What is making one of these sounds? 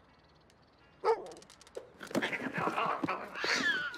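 A cardboard box knocks and tumbles over.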